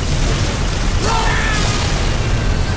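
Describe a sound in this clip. An explosion bursts close by.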